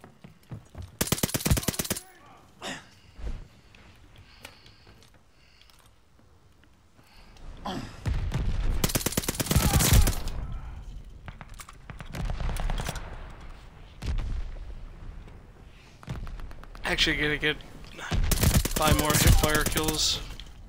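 A suppressed submachine gun fires in rapid bursts.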